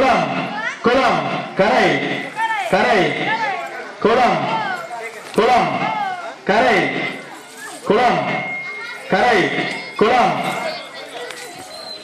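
A group of children sing a chant together loudly.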